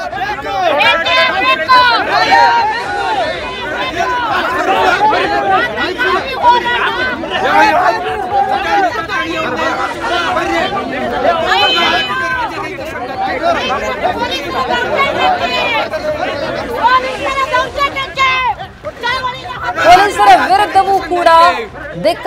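A crowd of men shout and argue loudly nearby.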